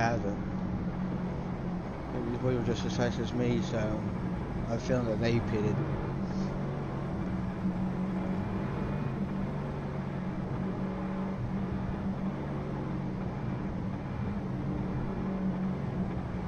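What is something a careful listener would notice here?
A racing car engine drones steadily.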